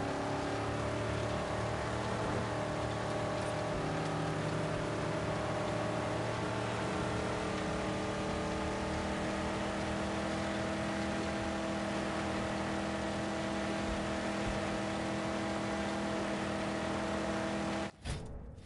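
Tyres rumble and hiss over sand and gravel.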